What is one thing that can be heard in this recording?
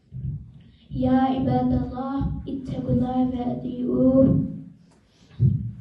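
A man chants in a long melodic call through a loudspeaker, echoing in a large room.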